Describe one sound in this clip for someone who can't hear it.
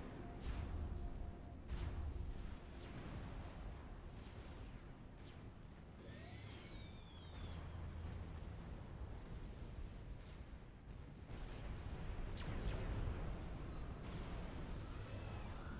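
Gunfire and explosions crackle and boom in a battle.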